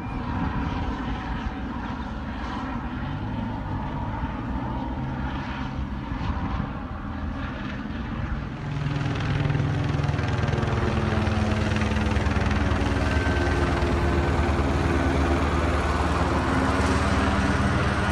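A helicopter's rotor thumps steadily overhead and grows louder as it nears.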